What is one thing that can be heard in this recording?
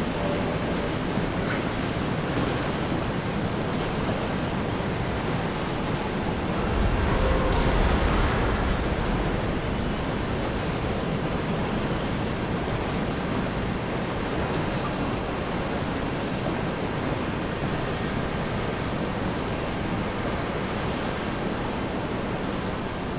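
Heavy machinery hums steadily in a large echoing hall.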